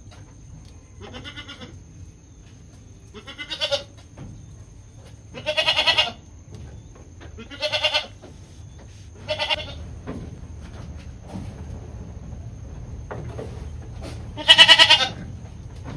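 Goats bleat close by.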